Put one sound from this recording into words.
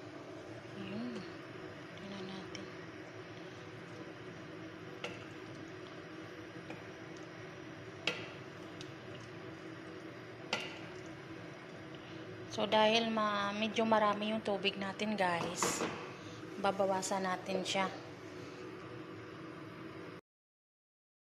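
A stew simmers in a metal pot.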